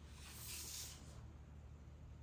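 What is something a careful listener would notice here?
A hand brushes across paper.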